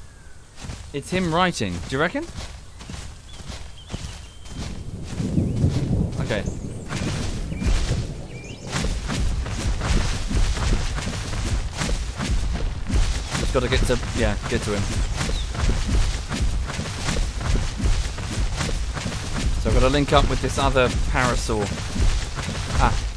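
Heavy footsteps of a large creature thud on the ground.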